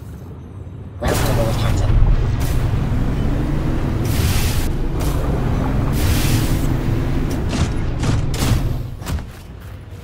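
A small submarine's motor hums steadily underwater.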